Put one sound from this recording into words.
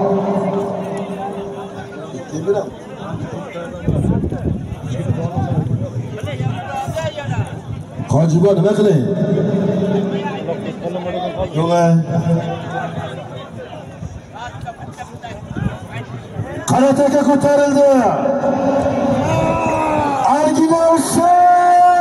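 A large crowd of men shouts and chatters outdoors.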